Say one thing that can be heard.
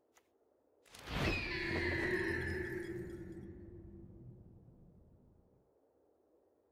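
A bright chime rings out over a deep rumbling swell that slowly fades.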